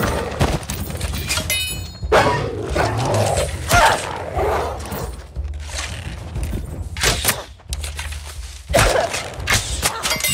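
A bowstring snaps as arrows are loosed in quick succession.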